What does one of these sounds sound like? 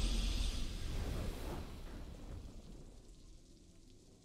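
A loud, triumphant game fanfare bursts out and slowly fades away.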